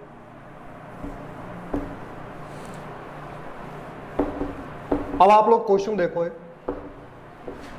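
A cloth eraser rubs across a whiteboard.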